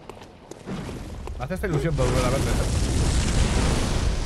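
Flames roar and whoosh.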